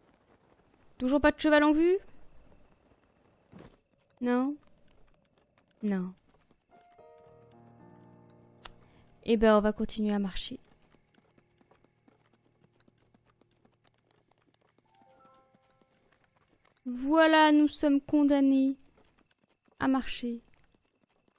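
A young woman speaks with animation into a microphone, in short bursts.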